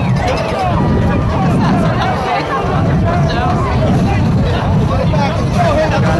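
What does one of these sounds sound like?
A crowd of young men shouts and talks outdoors.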